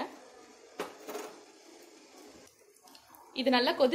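Spices sizzle in hot oil.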